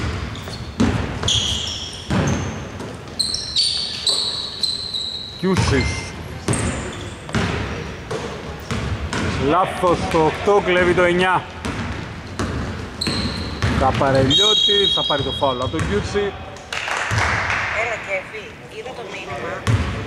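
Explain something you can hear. Basketballs bounce on a hard court with sharp thuds.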